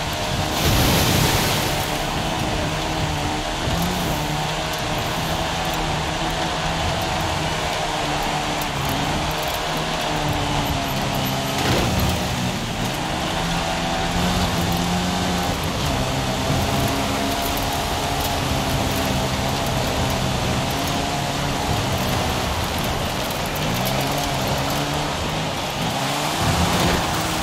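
Tyres hiss and spray through mud and puddles.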